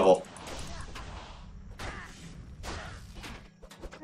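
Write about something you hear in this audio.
A fireball whooshes past in a video game.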